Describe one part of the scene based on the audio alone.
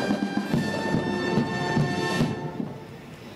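A drum beats in time with a band.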